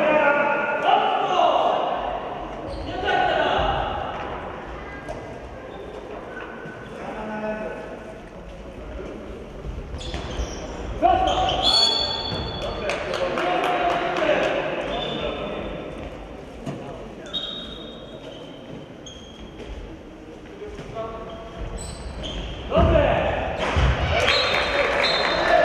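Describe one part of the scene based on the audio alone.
Men shout across a large echoing hall.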